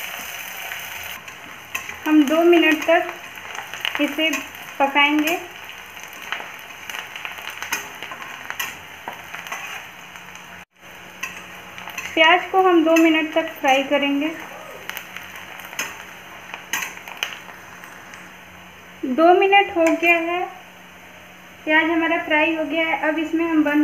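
Oil sizzles steadily as food fries in a pan.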